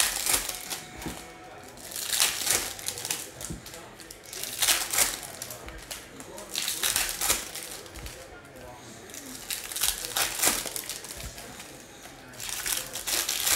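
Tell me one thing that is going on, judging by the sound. Trading cards rustle and flick as hands shuffle through them close by.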